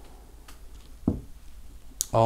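A bottle is set down on a wooden table with a knock.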